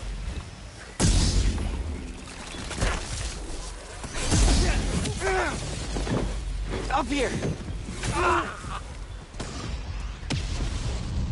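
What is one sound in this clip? Heavy blows and crashes land during a fight.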